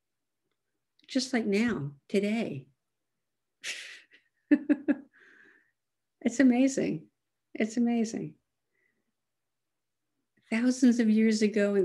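An elderly woman speaks calmly and close to the microphone, in short phrases with pauses.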